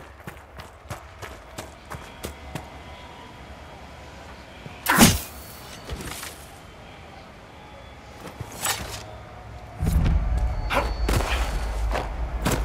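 Hooves thud on earth as a mount moves along.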